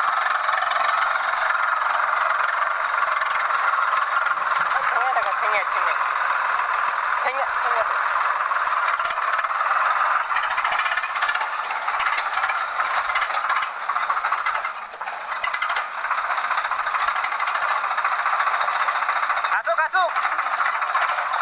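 A tractor engine chugs and rumbles close by.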